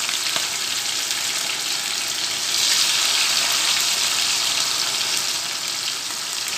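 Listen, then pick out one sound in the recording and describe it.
Hot oil sizzles and crackles steadily as food fries in a pan.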